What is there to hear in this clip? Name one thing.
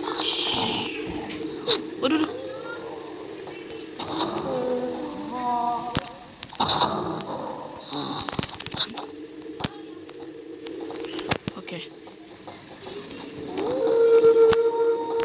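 A teenage boy talks casually close to a microphone.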